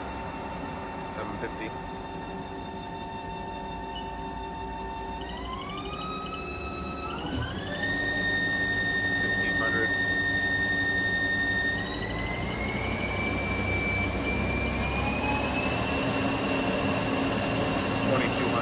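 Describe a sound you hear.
Machine motors hum steadily.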